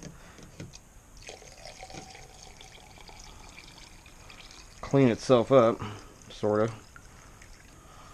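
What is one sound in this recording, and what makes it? Liquid pours from a jug into a container.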